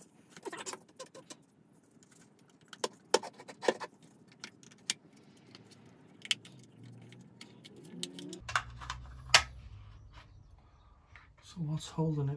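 A screwdriver scrapes against plastic.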